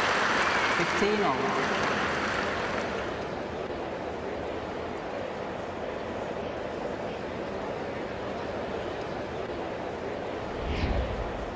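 A large crowd applauds loudly, then fades to a soft murmur.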